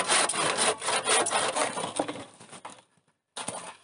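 An axe chops into wood.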